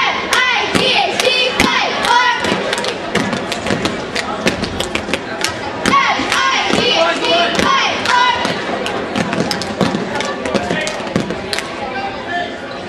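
Men call out from the sidelines.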